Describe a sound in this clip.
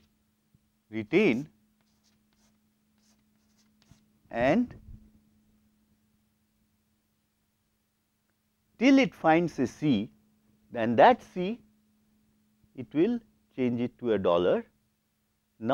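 A man lectures calmly through a clip-on microphone, with pauses.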